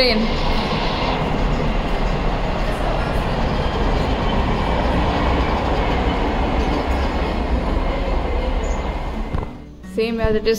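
A train rumbles past nearby.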